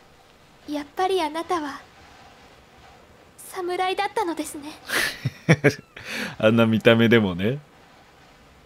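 A young woman speaks softly and sweetly.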